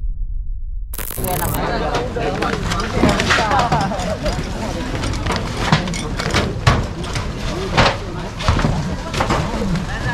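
Corrugated metal roof sheets clatter and bang as workers move over them.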